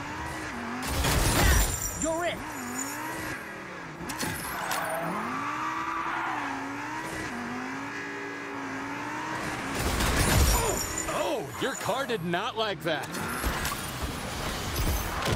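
A car engine revs and whines, rising and falling in pitch.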